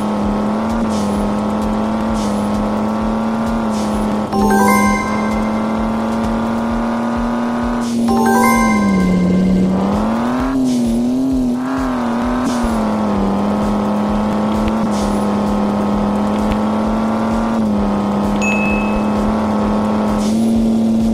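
A racing car engine hums steadily.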